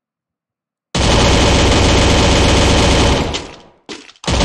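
A rifle fires a rapid, loud burst.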